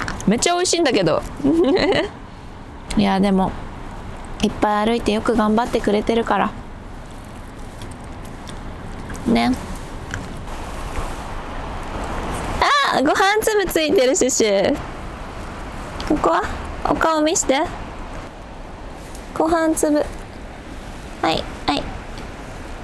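A young woman talks softly and playfully close by.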